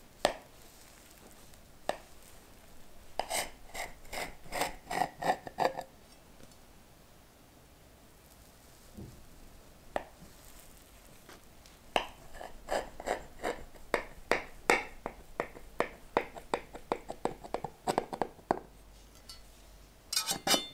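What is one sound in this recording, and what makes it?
A knife taps against a plate.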